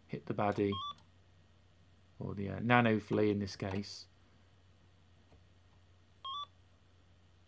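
Short electronic beeps sound from a video game.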